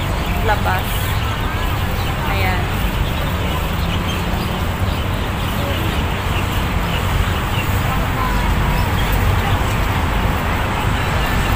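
A young woman talks calmly and close by, through a small microphone.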